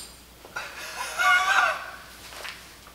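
A middle-aged man laughs nearby.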